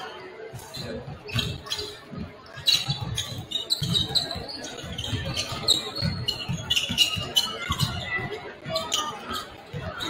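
Basketballs bounce on a wooden court in a large echoing gym.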